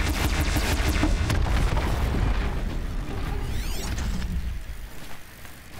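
A large machine crashes down with a loud rumble.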